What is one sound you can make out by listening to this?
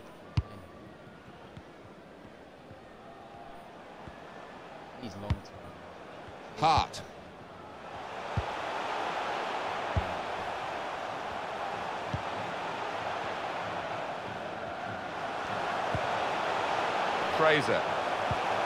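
A stadium crowd murmurs and swells into a steady roar.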